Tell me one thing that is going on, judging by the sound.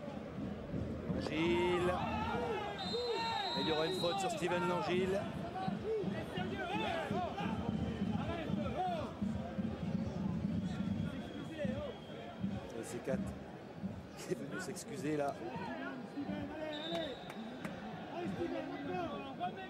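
A large crowd chants and sings loudly in a stadium.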